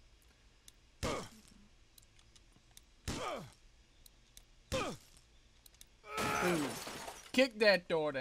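Glass cracks and shatters as a window is kicked.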